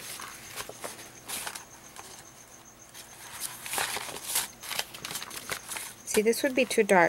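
Sheets of paper rustle and flap as they are flipped over.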